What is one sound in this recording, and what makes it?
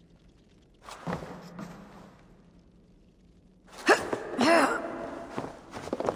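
Boots scrape and thud on a brick wall during a climb.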